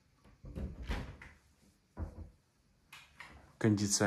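A cabinet door closes with a soft thud.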